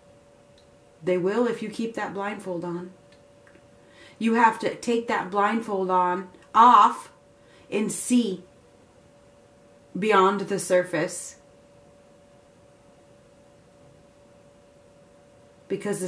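A woman speaks calmly and close by, in short bursts with pauses.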